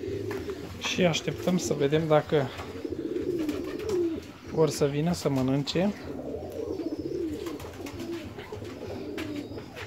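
Pigeons coo nearby.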